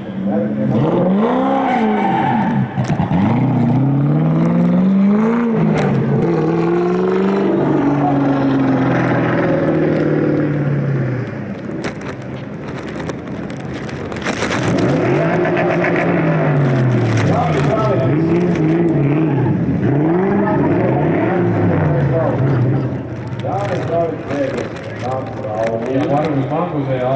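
A car engine revs hard up and down as the car drifts.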